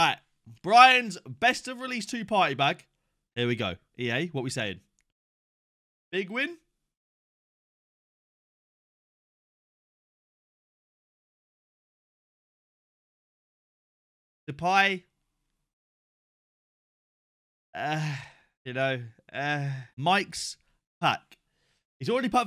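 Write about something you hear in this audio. A young man talks with excitement close to a microphone.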